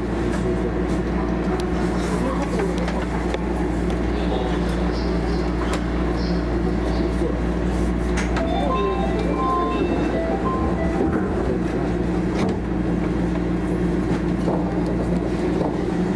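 A train's motors hum steadily while it stands still.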